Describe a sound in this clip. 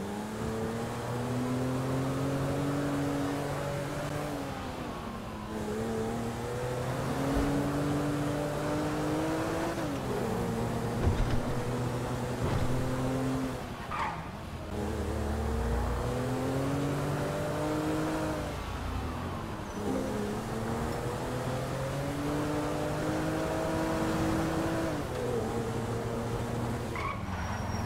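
A car engine revs up and drops back again and again as the car shifts through gears.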